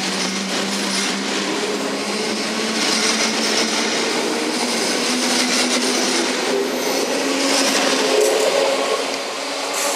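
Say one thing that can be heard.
An electric train rumbles past close by, its wheels clattering on the rails.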